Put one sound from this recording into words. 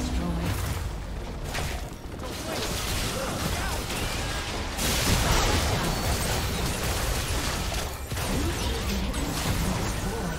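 Spell effects whoosh and crackle in a game battle.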